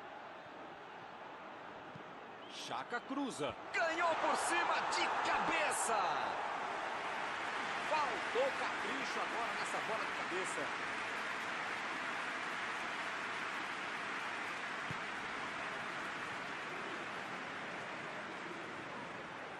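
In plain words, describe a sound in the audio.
A large stadium crowd roars and cheers throughout.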